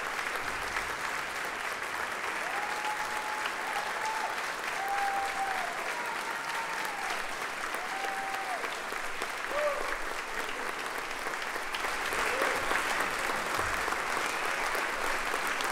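A large audience applauds steadily in a big hall.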